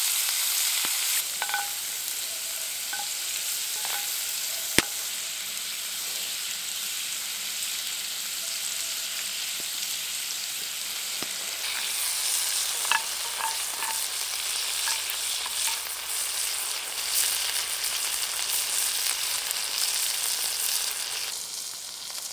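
Shrimp sizzle and crackle in a hot pan.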